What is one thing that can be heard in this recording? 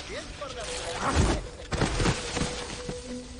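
A body thuds onto the ground.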